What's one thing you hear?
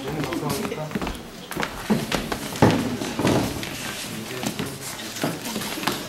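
Chairs scrape and knock.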